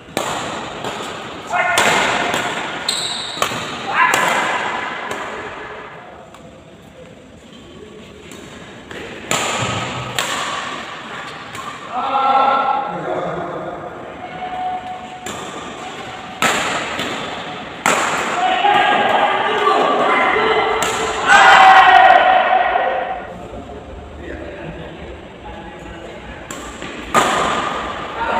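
Rackets sharply hit a shuttlecock back and forth, echoing in a large hall.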